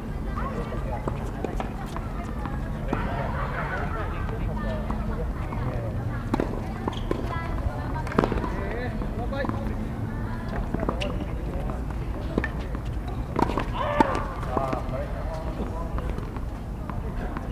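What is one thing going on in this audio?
Tennis balls are struck with rackets, giving sharp pops back and forth.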